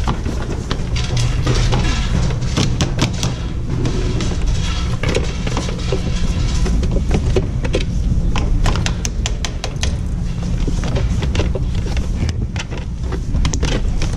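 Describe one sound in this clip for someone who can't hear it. Skis clatter and knock against a metal rack.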